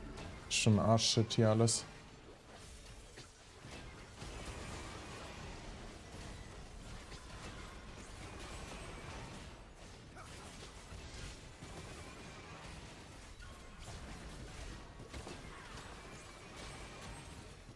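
Game effects whoosh and clash in a battle.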